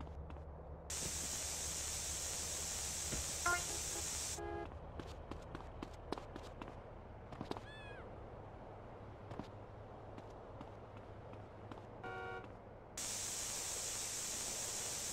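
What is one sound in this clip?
A spray can hisses as paint sprays onto a wall.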